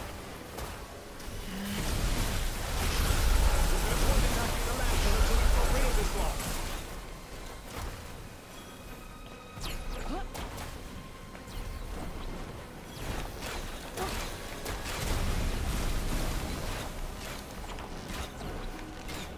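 Magic blasts crackle and boom loudly.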